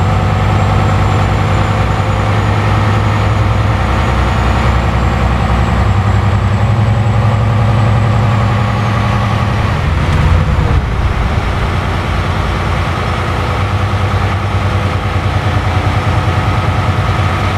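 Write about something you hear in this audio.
A truck's tyres roll over the road.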